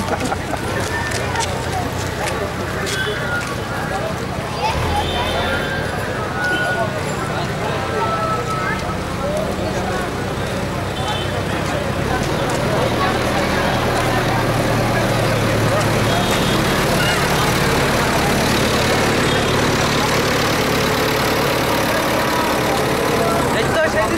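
A crowd of men murmurs and chatters outdoors.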